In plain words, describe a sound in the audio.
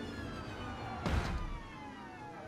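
A car crashes with a loud thud.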